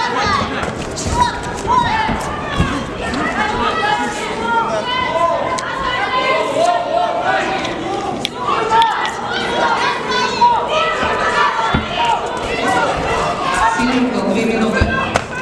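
A crowd cheers and shouts loudly, echoing in a large hall.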